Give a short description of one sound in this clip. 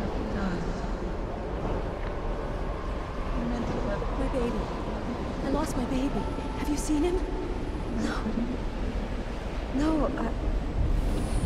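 A young woman speaks softly and sadly, close by.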